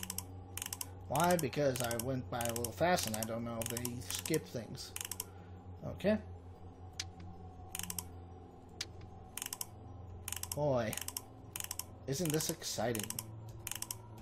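Clock hands click as they are turned.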